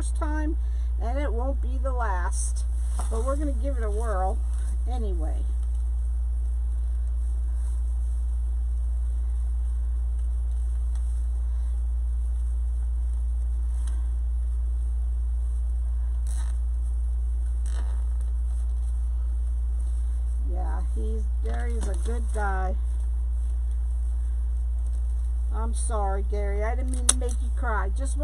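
Plastic tinsel branches rustle as hands bend and twist them.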